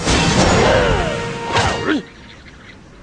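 A cartoon bird squawks loudly.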